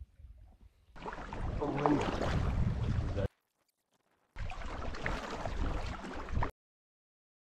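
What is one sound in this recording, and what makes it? A paddle splashes and swishes through choppy water.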